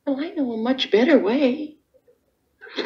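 A woman speaks emotionally, heard through a television.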